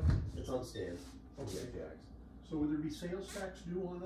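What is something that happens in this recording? A closet door swings open.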